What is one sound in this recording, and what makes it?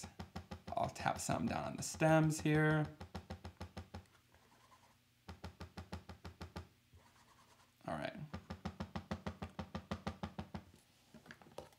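A foam blending tool taps rapidly on paper.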